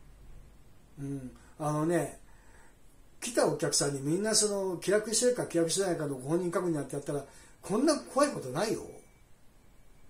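A man speaks on a phone close by, talking with animation.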